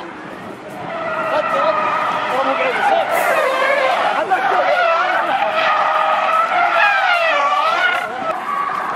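Tyres screech on asphalt as a car drifts.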